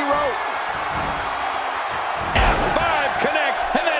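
A body slams heavily onto a wrestling mat with a thud.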